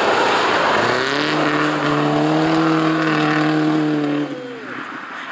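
Tyres spray snow as a car slides past.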